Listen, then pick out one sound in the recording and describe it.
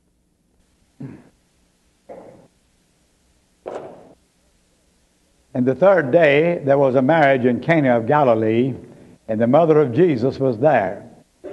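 An elderly man speaks slowly, close to a microphone.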